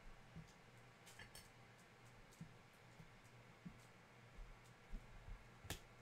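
Trading cards rustle and flick as hands sort through them.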